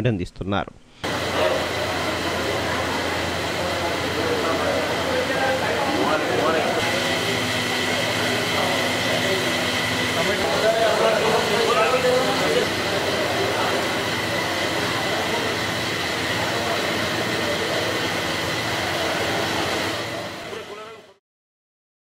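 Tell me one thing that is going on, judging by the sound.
Water mist hisses steadily from a spray pipe.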